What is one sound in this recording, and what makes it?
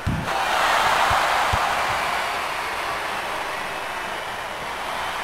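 A large crowd roars and cheers steadily in an echoing arena.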